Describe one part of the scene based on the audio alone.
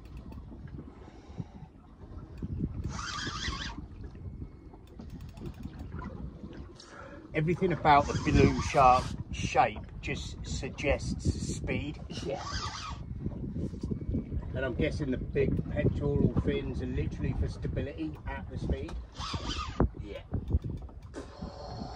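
A fishing reel clicks as it is wound in.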